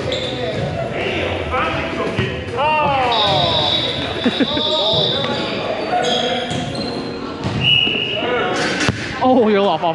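A volleyball is struck with a sharp slap in a large echoing gym.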